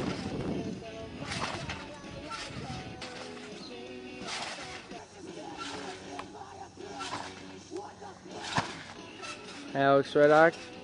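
A trampoline's springs creak and thump as a person bounces.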